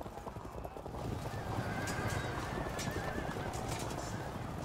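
Game battle sounds of a cavalry charge clash and rumble.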